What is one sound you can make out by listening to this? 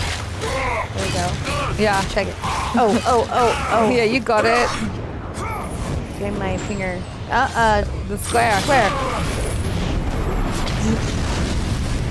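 Heavy blows and clashes ring out in a video game fight.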